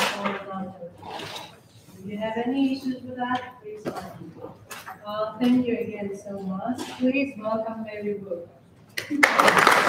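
A woman speaks calmly in an echoing hall.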